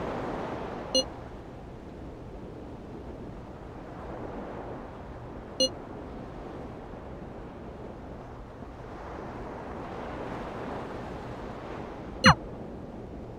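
A phone gives a short chime as each message arrives.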